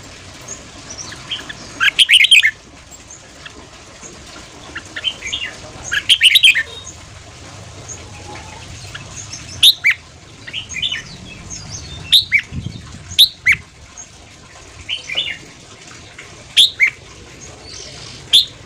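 A caged bird sings loud, sharp whistled phrases close by.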